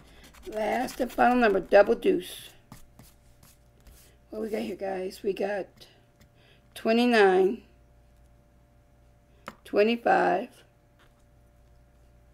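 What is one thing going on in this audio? A coin scratches across a paper card.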